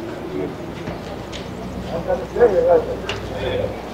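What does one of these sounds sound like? Footsteps tap on cobblestones outdoors.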